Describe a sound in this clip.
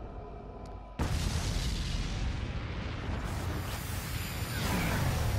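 A loud blast of energy roars.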